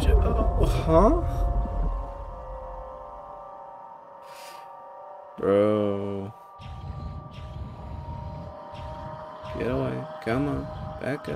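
A small submarine's motor hums steadily underwater.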